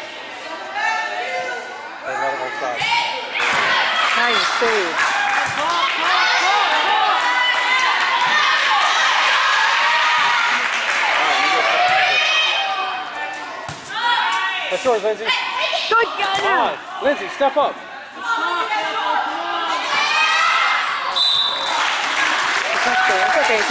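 Spectators and young players shout and cheer in a large echoing hall.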